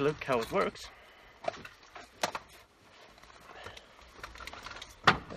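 Gear rustles and clicks.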